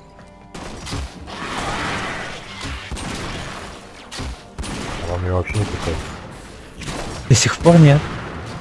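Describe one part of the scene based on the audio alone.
Gunfire and weapon blasts crack in quick bursts.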